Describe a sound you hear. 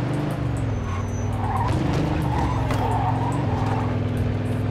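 Car tyres squeal briefly on a turn.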